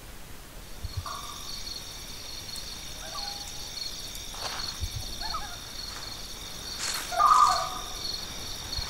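Short electronic game chirps sound now and then.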